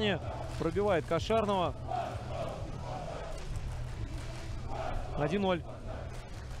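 Men shout loudly.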